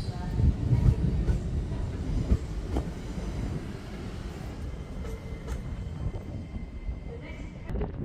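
A train rumbles past close by and fades away.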